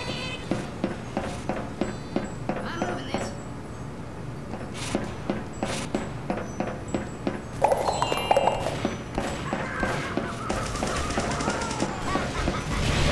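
Quick footsteps run along a hard floor.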